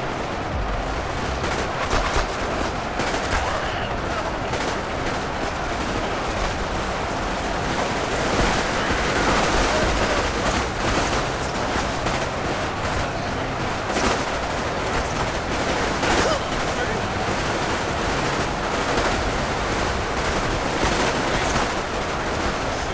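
A huge battle roars with a dense, constant clatter of gunfire and clashing.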